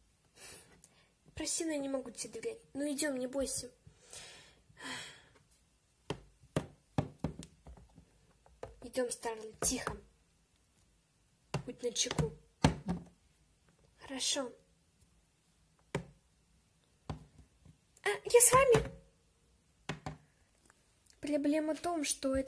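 Plastic toys knock and tap lightly on a hard surface.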